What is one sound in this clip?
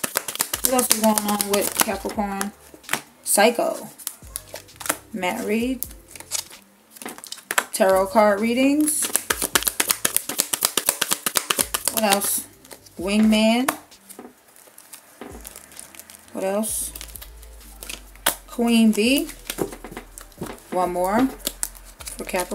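Playing cards flutter and snap as they are shuffled by hand.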